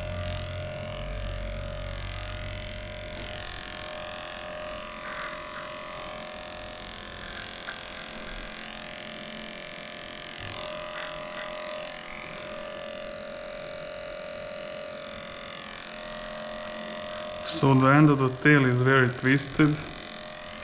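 Electric clippers hum steadily close by.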